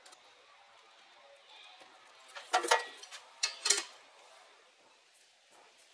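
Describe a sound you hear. A pencil scratches marks onto metal.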